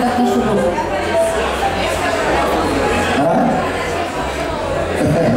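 A man sings into a microphone over amplified music.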